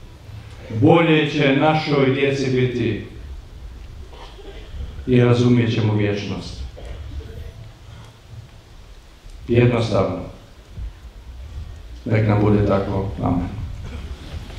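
An elderly man speaks calmly and slowly through a microphone and loudspeakers, outdoors.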